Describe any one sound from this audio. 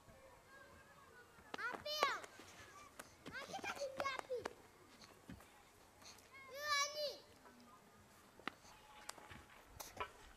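Tin cans thump on hard dirt as a child walks on them.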